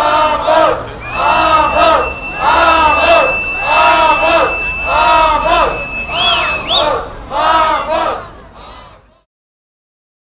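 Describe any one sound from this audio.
A large crowd chants loudly in unison outdoors, in a steady rhythm.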